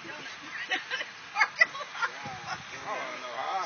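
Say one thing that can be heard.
A young woman laughs loudly from close by.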